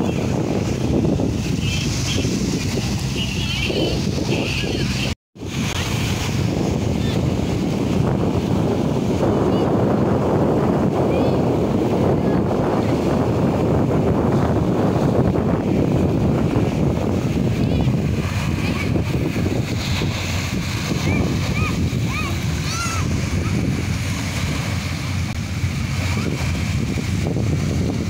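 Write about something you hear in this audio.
Small waves lap and wash onto the sand.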